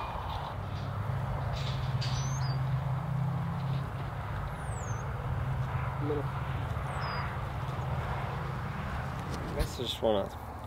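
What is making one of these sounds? Bison graze and tear at dry grass.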